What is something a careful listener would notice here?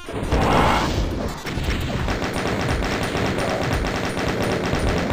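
Rockets launch and explode with loud booms.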